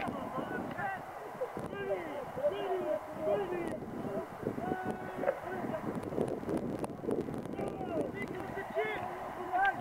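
Several men shout and call out across an open field, all at once.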